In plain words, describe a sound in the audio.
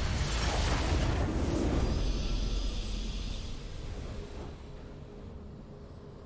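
A triumphant victory tune plays and fades.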